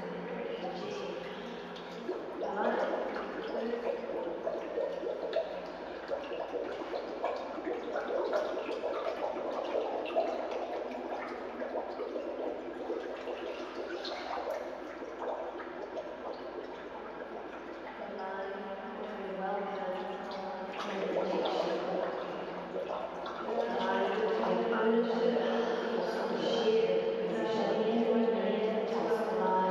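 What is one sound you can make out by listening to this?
A woman's voice sounds muffled and hollow, close by.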